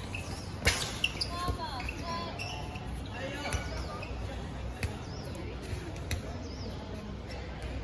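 Girls shout and call out to one another across the court.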